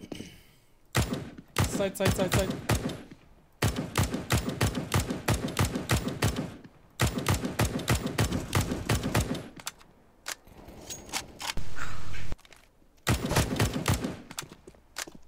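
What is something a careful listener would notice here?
Rapid bursts of rifle gunfire ring out from a video game.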